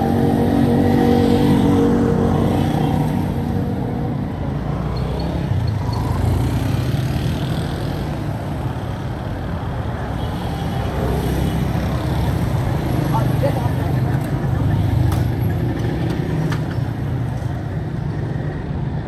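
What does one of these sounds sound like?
Motorcycles pass by on a street.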